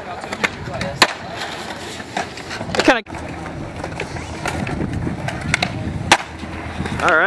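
A skateboard deck clacks against the ground.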